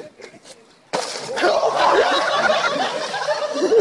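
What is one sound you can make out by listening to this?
A person crashes through ice and splashes into water.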